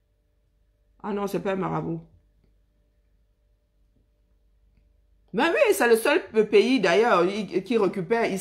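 A woman speaks close to the microphone, pausing between phrases.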